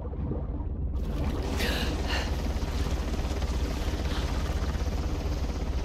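Water sloshes and laps as a swimmer moves at the surface.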